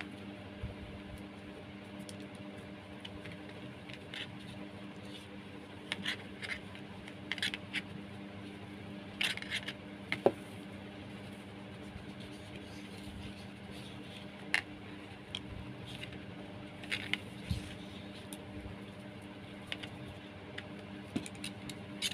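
Jute twine rustles and scratches as hands twist it.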